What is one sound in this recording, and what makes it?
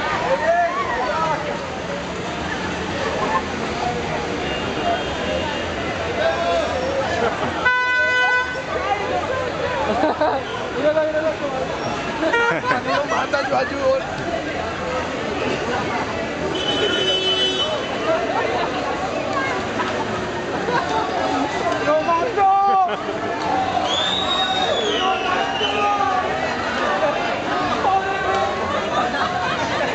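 A crowd of people talks and shouts outdoors on a street at night.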